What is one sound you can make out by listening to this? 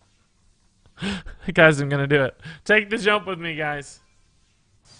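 A young man laughs excitedly.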